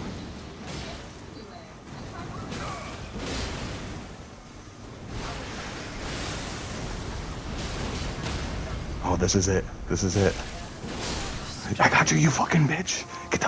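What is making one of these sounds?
Metal blades clash and slash.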